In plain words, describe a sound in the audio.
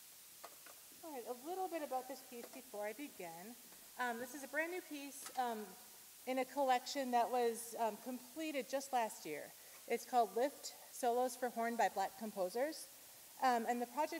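A saxophone plays a lively melody in an echoing hall.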